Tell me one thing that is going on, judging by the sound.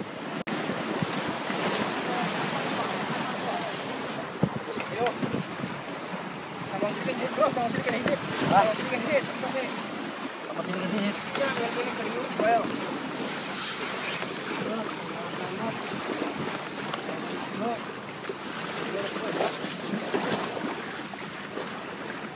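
Water splashes and churns against the side of a boat.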